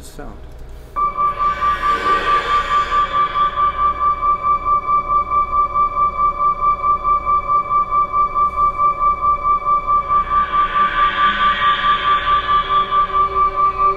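A rapidly pulsing electronic tone plays steadily.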